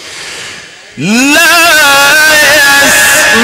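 A man chants loudly and melodiously into a microphone, heard through loudspeakers.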